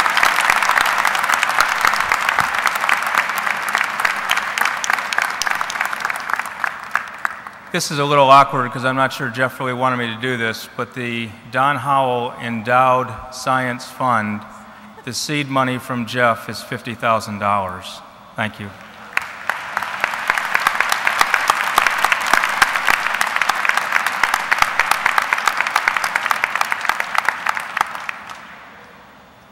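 A large crowd claps and applauds in a big echoing hall.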